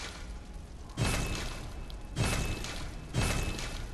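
Short bright chimes sound as menu choices are confirmed.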